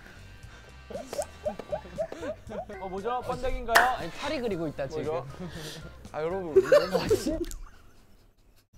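Young men talk and laugh with animation.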